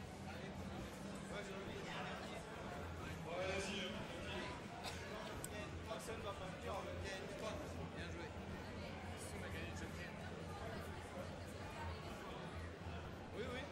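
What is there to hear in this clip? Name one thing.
A crowd of people chatters in a busy, echoing hall.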